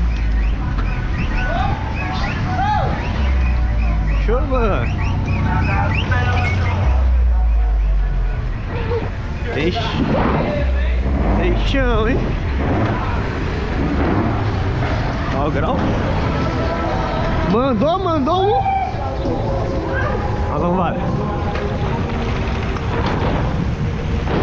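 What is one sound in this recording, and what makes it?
Wind rushes loudly past while riding outdoors.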